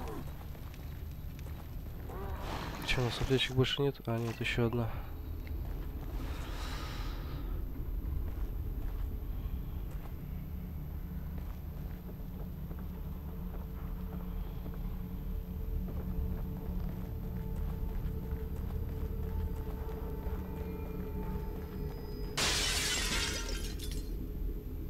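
Footsteps crunch over grass and dirt.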